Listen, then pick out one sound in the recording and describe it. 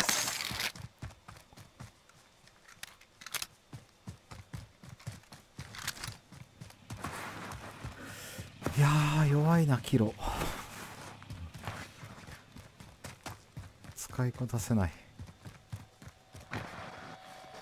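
Quick footsteps thud on grass and gravel.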